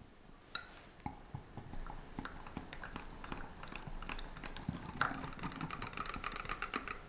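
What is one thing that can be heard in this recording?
A small whisk clinks rapidly against a glass cup.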